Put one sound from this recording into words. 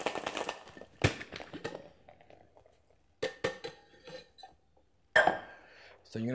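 A metal shaker tin clanks as it is knocked open and set down.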